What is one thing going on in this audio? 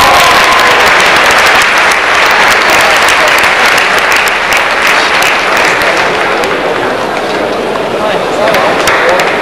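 A large indoor crowd cheers and shouts loudly, echoing through the hall.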